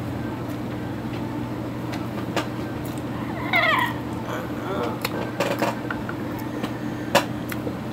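A woman chews food with wet smacking sounds close to a microphone.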